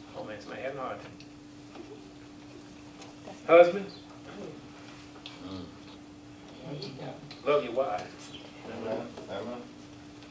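A man speaks slowly and deliberately into a microphone, with pauses.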